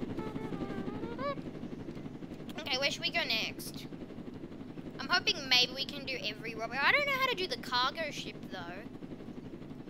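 A young boy talks excitedly into a microphone.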